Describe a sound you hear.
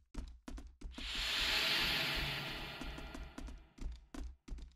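A rushing whoosh swells and fades.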